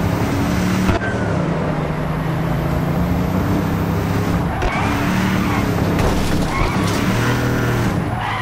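A car engine hums steadily and revs as the car speeds along a road.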